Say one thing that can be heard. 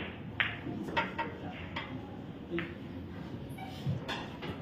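Pool balls clack against each other and the cushions.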